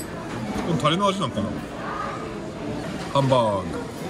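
A fork scrapes against a plate.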